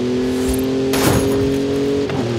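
A sign smashes loudly as a car crashes through it.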